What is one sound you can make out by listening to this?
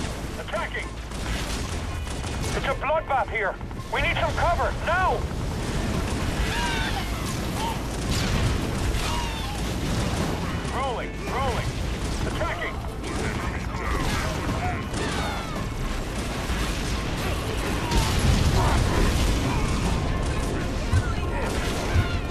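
Energy weapons fire in a battle.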